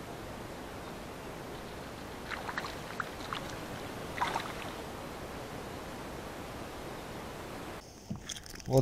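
Wind blows softly outdoors.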